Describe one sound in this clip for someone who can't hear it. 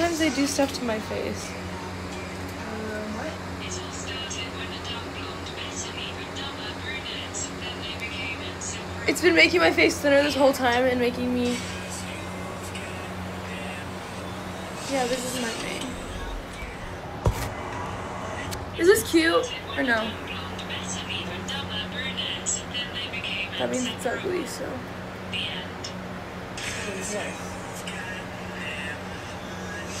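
A young woman talks casually and close to a phone microphone.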